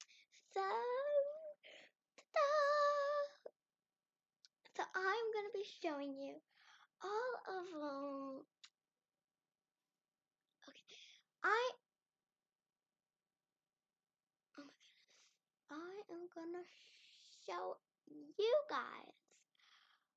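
A young girl talks with animation close to the microphone, in bursts with pauses.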